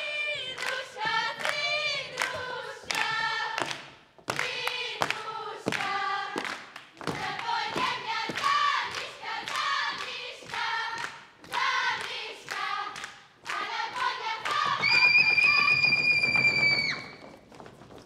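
A group of women sings a lively folk song together.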